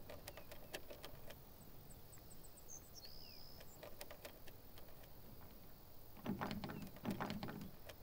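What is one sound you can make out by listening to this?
Metal clicks and scrapes as a lock is picked.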